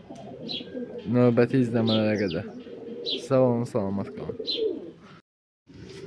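Pigeons coo close by.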